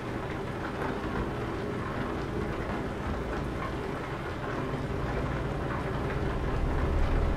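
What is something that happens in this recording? A diesel truck engine drones as the truck cruises along a road.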